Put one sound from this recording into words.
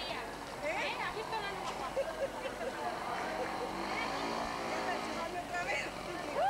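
Children and women chatter in a lively crowd outdoors.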